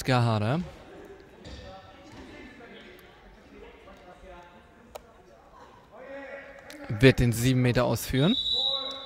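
Spectators shout loudly in an echoing sports hall.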